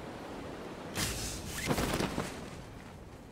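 A parachute snaps open with a loud flapping burst.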